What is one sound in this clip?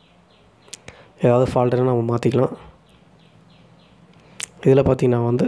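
Plastic clicks and taps as hands turn a small charger.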